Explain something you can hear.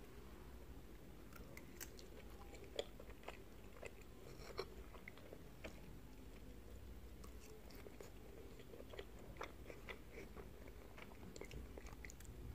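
A woman chews food noisily up close.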